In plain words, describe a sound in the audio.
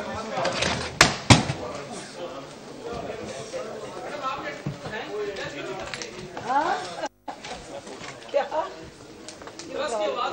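Several men talk over one another nearby, in a murmuring crowd.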